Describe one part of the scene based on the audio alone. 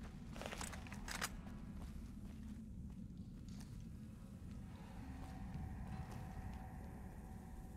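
Footsteps crunch softly on sandy ground.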